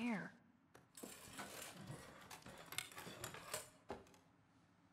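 A chair scrapes across a hard floor.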